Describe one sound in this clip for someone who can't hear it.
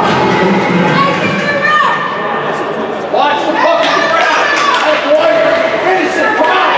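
Hockey sticks clack against a puck and against each other.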